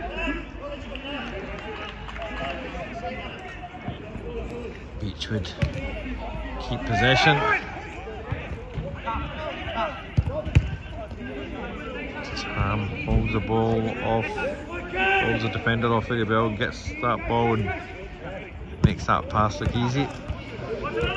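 Men shout and call out to each other outdoors.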